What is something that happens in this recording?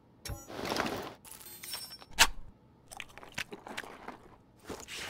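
Gear rustles and clicks as someone rummages through a crate.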